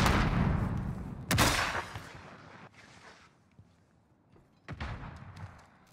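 Loud gunshots bang and echo.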